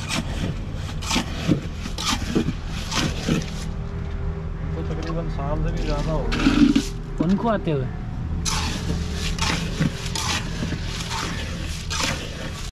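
A metal tool scrapes and taps against a hard floor.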